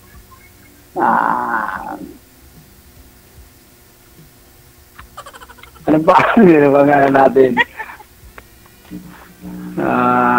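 A middle-aged woman laughs over an online call.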